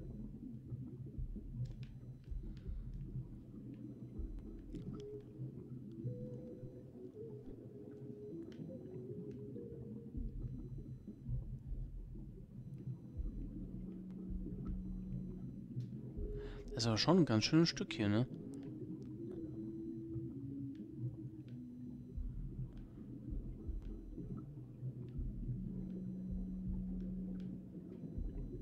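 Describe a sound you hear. A swimmer moves through water in a low, muffled underwater rumble.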